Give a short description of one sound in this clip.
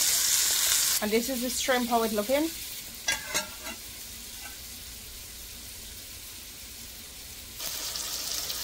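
A metal spoon scrapes and stirs in a pan.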